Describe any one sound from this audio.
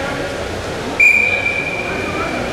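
A referee blows a sharp whistle blast.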